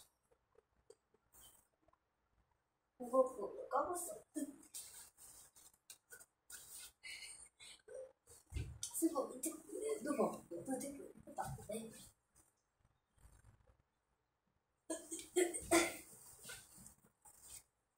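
Paper rustles and scrapes under hands.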